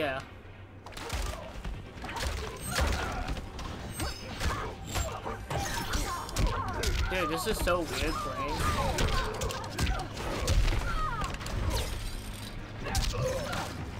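Fighters grunt and shout as they trade blows.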